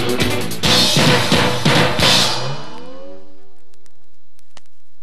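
Music plays from a record and ends with a chord that slowly fades.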